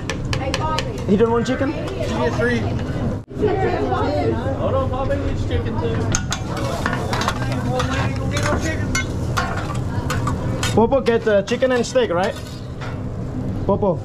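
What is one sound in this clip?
People talk and chatter nearby.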